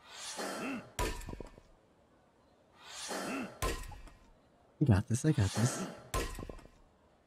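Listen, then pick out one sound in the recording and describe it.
Wood splits with a sharp crack.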